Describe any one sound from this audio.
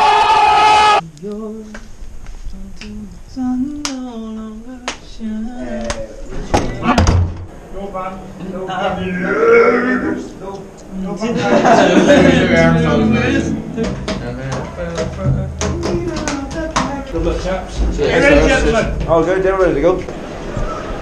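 Several young men chatter and laugh nearby.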